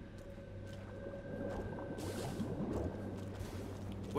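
Quick footsteps patter over hard ground.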